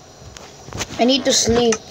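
A young boy speaks briefly, close to the microphone.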